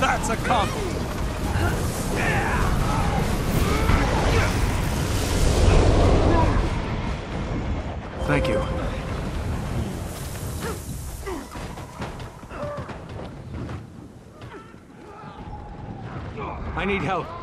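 Magic spells crackle and burst in a video game fight.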